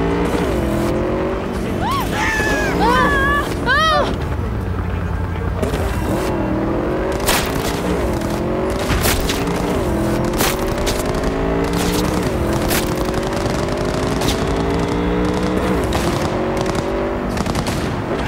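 A motorcycle engine hums and rises in pitch as it speeds up through the gears.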